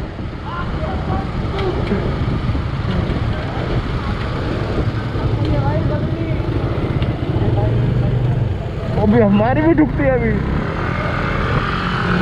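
Other motorcycles rumble nearby.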